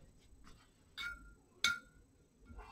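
A paintbrush clinks against a glass water jar.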